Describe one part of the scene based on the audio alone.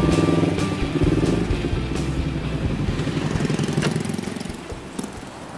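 A motorcycle engine idles and revs nearby.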